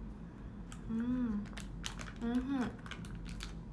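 A young woman speaks briefly in a high, animated voice close by.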